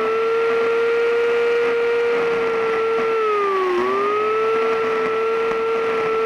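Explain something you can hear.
A power carving tool whines steadily as it grinds into wood, dipping in pitch briefly under load.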